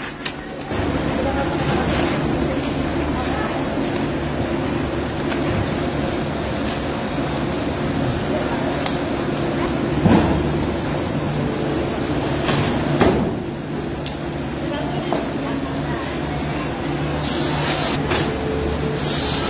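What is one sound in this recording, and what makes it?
Wooden sheets clatter and slap as they are handled.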